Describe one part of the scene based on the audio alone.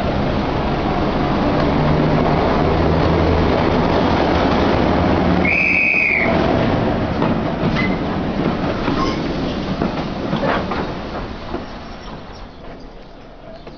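A train rumbles and clatters along the tracks, slowly fading.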